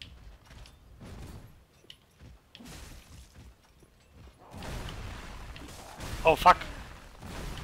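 A sword swings and strikes in a fight.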